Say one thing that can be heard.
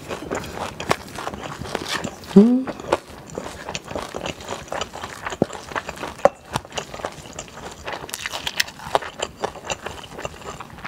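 A metal spoon scrapes and clinks in a stainless steel bowl while mixing rice, close to the microphone.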